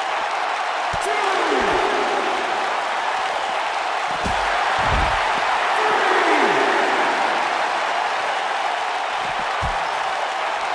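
Bodies thud heavily onto the floor.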